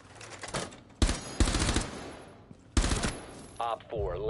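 Gunshots fire in loud, quick bursts.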